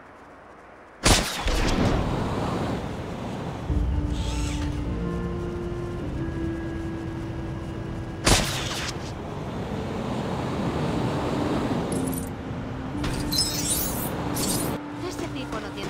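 Jet thrusters roar and whoosh in flight.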